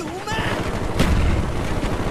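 A machine gun fires in short bursts.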